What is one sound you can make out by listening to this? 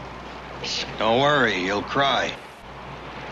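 A man speaks in a strained, pained voice close by.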